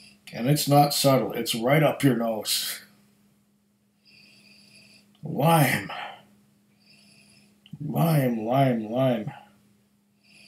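An older man speaks with animation close to a microphone, in short bursts.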